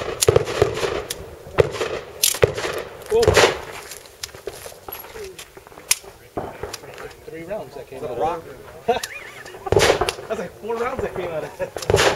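Gunshots crack one after another, echoing outdoors.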